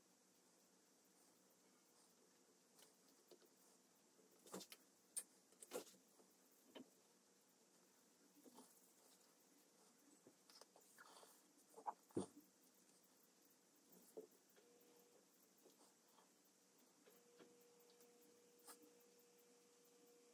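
Hands tap and press soft clay now and then.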